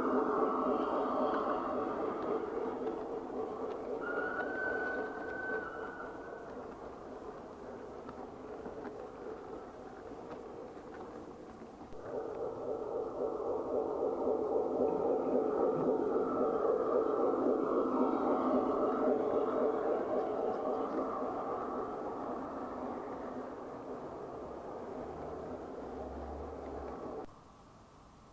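A model train rumbles and clatters along the track.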